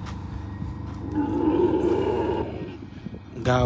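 A camel grumbles up close.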